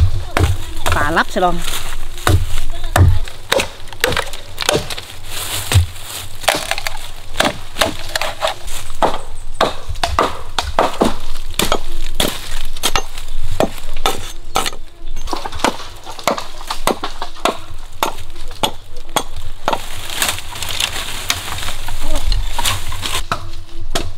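Leaves and twigs rustle and snap.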